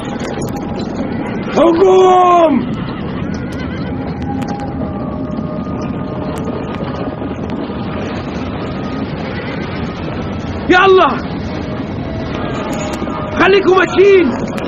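Hooves and chariot wheels rumble steadily over the ground.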